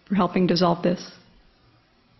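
A young woman speaks calmly into a microphone.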